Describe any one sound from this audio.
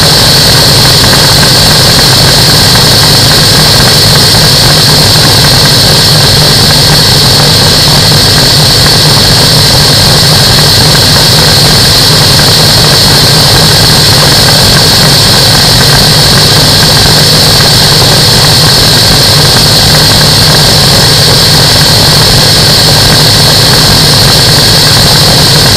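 Wind roars loudly past the microphone.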